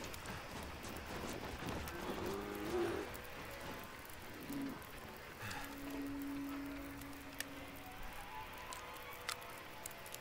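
A flare hisses as it burns.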